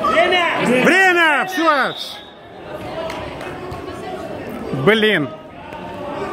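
Spectators shout loudly in an echoing hall.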